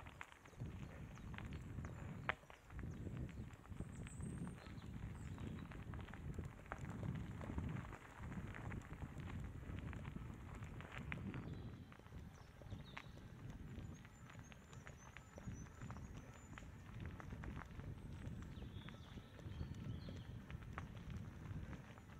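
Wind rumbles against a microphone.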